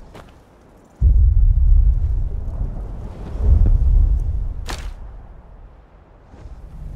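A dragon roars with a deep, booming rumble.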